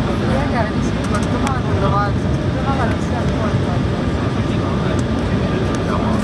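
Jet engines roar steadily as an airliner rolls along the ground.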